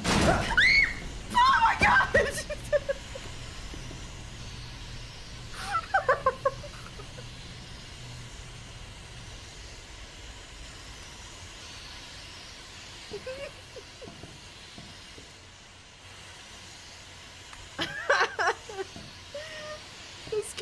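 A young woman talks and laughs with animation into a close microphone.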